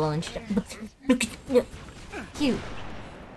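A gun fires in a short burst.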